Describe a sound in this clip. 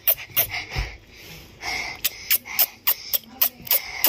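A boy laughs close by.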